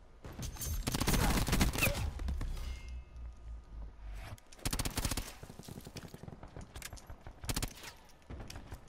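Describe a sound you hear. Rapid gunfire bursts out in short, loud volleys.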